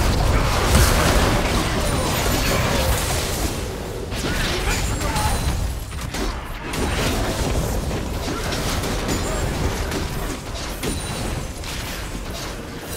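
Spell effects whoosh and crackle in a fast game battle.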